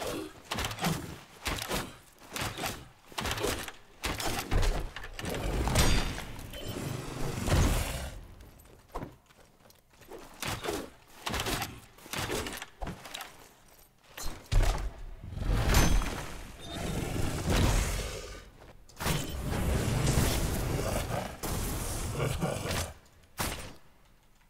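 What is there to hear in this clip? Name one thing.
Weapons clash and thud in a fight with a large creature.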